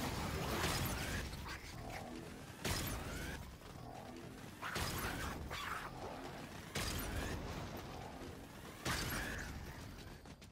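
Laser pistols fire in bursts in a video game.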